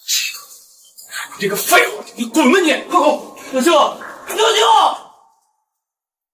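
A man speaks angrily.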